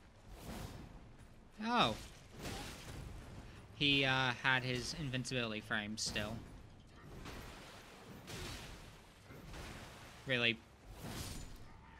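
Metal blades clash and ring.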